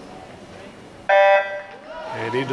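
A starting beep sounds once in a large echoing hall.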